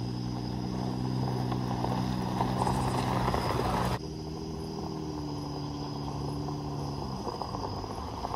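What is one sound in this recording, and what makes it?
A truck engine revs and changes pitch.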